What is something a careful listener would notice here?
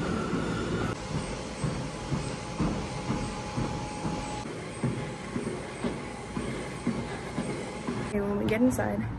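Footsteps thud on a treadmill belt.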